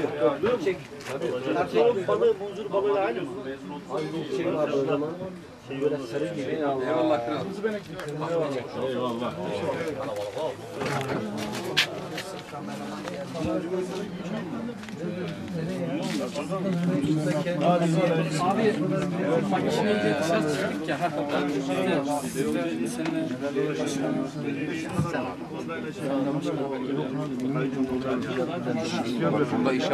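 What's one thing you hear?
Several men talk and chatter nearby outdoors.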